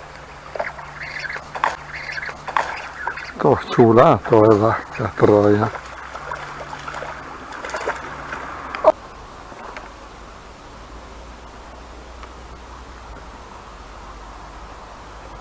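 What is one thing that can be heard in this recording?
A river flows gently nearby.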